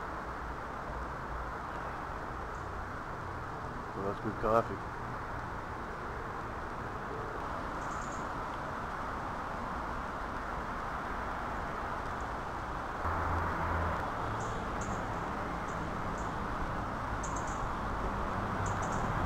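Wind rustles through leafy trees outdoors.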